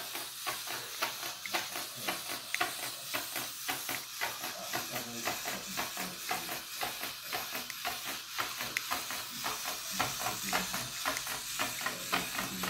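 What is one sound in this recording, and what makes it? A small robot bug whirs and clatters its legs across a wooden tabletop.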